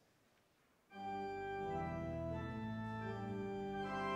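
An organ plays sustained chords.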